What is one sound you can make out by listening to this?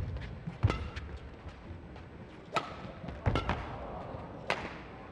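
Badminton rackets smack a shuttlecock back and forth in a large hall.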